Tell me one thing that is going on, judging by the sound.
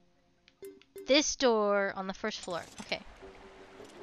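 Bright electronic menu chimes ring in quick succession.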